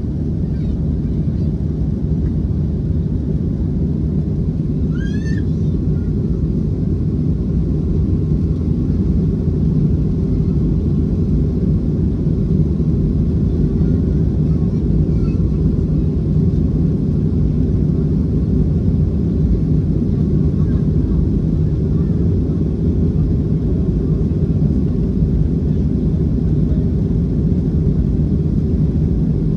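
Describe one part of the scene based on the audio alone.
Jet engines roar steadily from inside an airliner climbing after takeoff.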